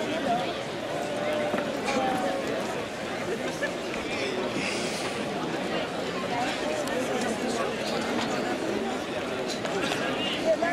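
A large crowd of men and women chatters and murmurs steadily outdoors.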